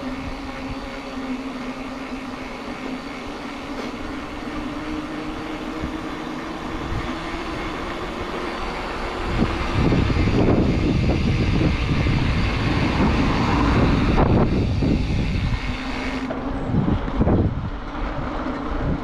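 Bicycle tyres roll over rough pavement.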